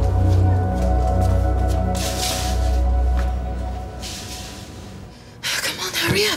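Music plays with a low beat.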